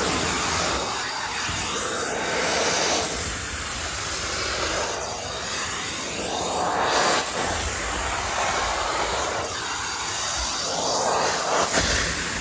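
A carpet cleaning wand sucks loudly over a carpet in strokes.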